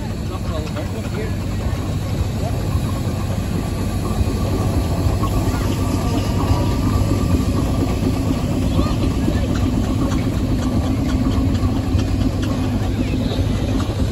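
A steam traction engine chugs and rumbles steadily close by.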